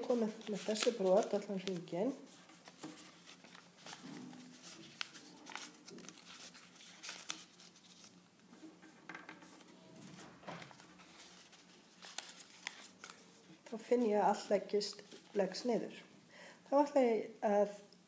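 Paper rustles and creases as hands fold it.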